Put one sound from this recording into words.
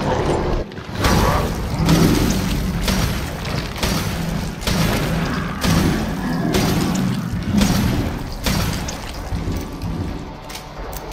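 A pistol fires repeated loud shots in an echoing hall.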